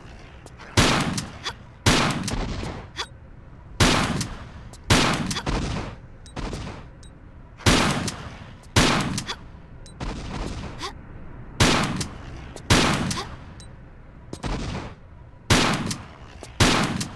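Pistol shots fire in pairs, each ringing out with a long echo.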